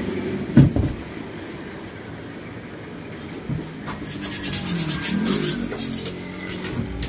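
A blade scrapes across woven rattan in quick strokes.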